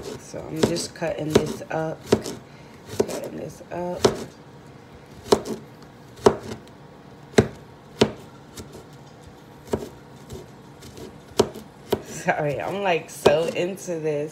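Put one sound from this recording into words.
A knife chops on a cutting board with sharp taps.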